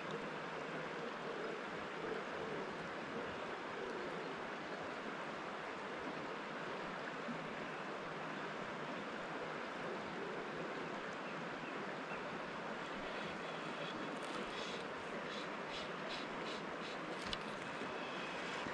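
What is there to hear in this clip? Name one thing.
A river flows steadily over rocks close by.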